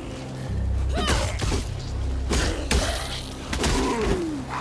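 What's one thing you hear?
Sharp hits and blasts ring out in a fight.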